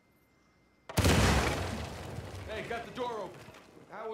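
A loud explosion booms and debris rains down.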